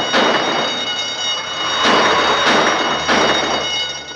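Gunshots ring out outdoors.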